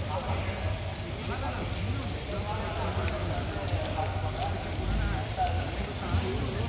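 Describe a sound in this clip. A crowd of people talks and chatters outdoors at a distance.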